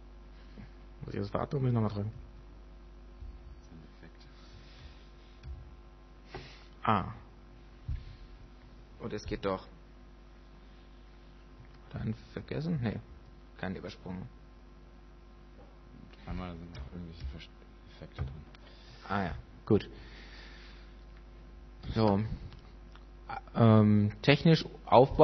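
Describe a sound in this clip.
A man speaks into a microphone in short bursts, heard through a loudspeaker.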